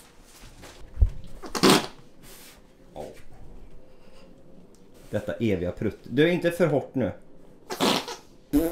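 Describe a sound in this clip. A foot stomps on a plastic toy on a wooden floor.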